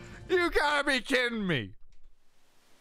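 A man shouts with animation close to a microphone.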